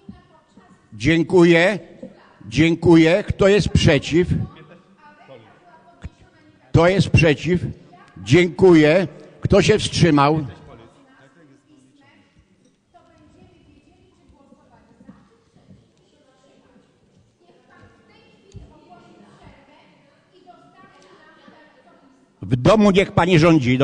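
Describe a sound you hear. A man speaks through a microphone in a large hall, in loud bursts with pauses.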